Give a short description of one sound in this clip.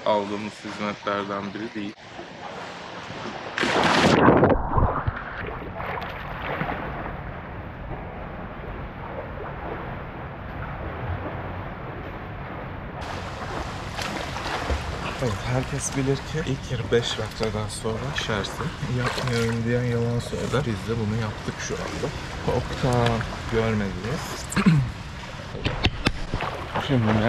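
A man talks close up.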